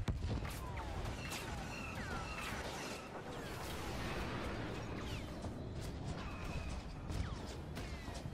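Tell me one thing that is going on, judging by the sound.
Laser blasts zap and whine repeatedly.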